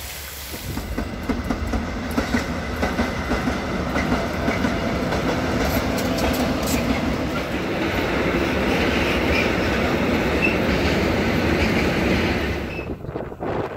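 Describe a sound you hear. A freight train rumbles and clatters past on the tracks.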